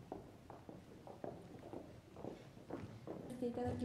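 High heels click on a wooden stage floor.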